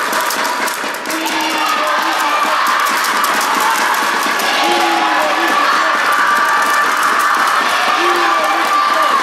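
Young spectators chatter in a large echoing hall.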